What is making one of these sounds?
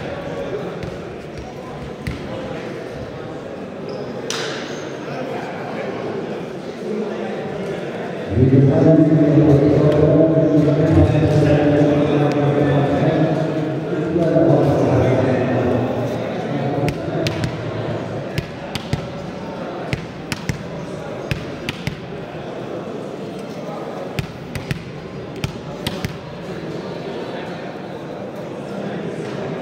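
A crowd of young people murmurs and chatters in a large echoing hall.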